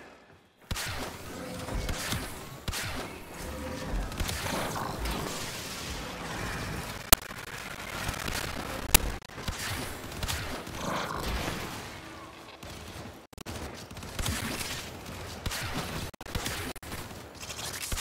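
Weapons fire and energy blasts crackle in a game battle.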